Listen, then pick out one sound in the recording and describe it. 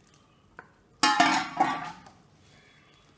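A spatula scrapes against a metal pot.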